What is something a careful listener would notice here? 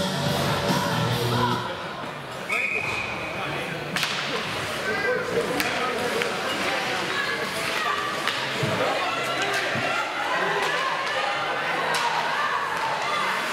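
Spectators chatter and call out in an echoing rink.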